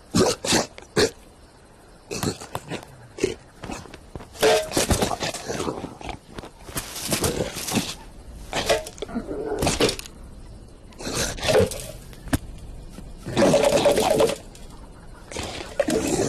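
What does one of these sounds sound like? A man speaks in a cartoonish voice, with animation.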